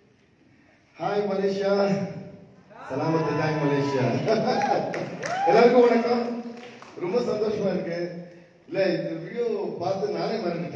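A young man speaks loudly with animation through a microphone and loudspeakers in a large echoing hall.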